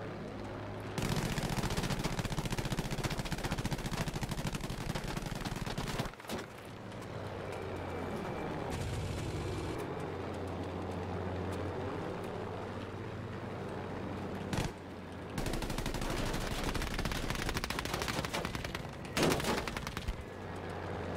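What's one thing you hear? Machine guns fire in long rapid bursts.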